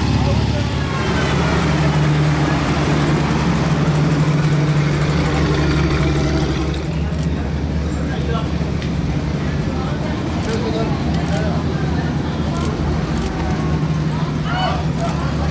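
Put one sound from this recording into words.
A heavy military vehicle engine rumbles and clanks close by.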